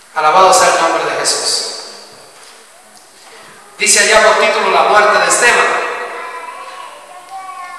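A man speaks with emphasis into a microphone over loudspeakers in an echoing hall.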